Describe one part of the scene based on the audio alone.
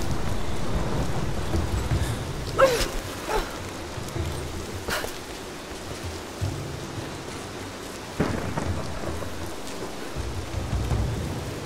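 Footsteps scrape and thud on stone.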